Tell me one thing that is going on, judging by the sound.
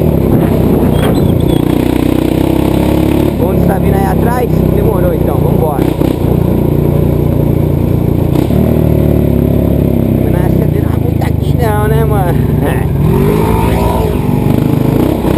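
A quad bike engine rumbles steadily up close as it drives along.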